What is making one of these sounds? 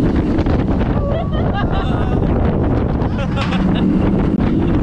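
A young man laughs and whoops close by.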